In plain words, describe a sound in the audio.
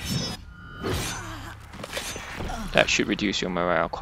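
Swords clash and strike in a close fight.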